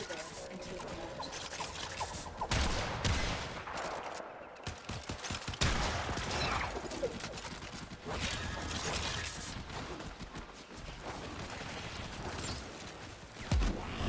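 A heavy blade swooshes through the air.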